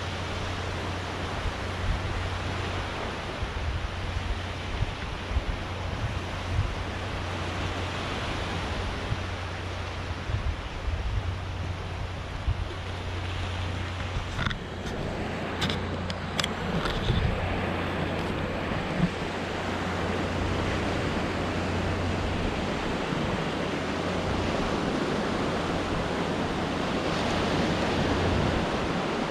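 Wind rumbles and buffets loudly outdoors.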